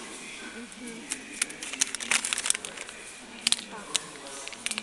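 A plastic bag of pet food crinkles as a hand handles it.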